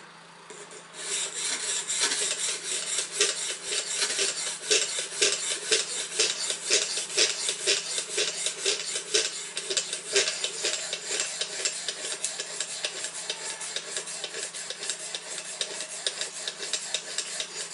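A sharpening stone scrapes rapidly back and forth along a knife blade.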